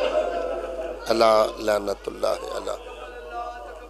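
Another man speaks briefly into a microphone.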